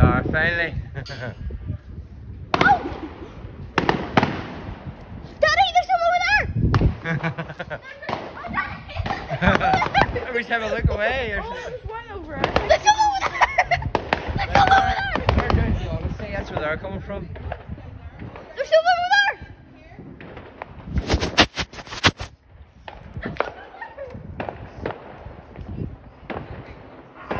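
Fireworks bang and crackle outdoors, echoing off buildings.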